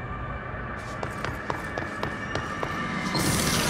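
Footsteps run quickly up hard stone stairs.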